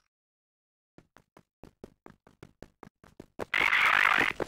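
Footsteps tread steadily on hard stone.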